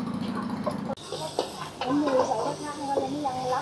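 A metal ladle scrapes and clinks in a wok.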